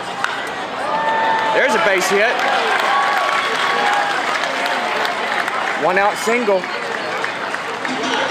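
A crowd cheers louder as the play unfolds.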